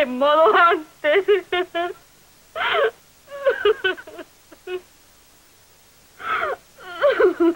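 A young woman sobs and cries.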